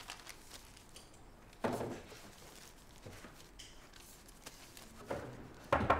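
Papers rustle as a man leafs through them.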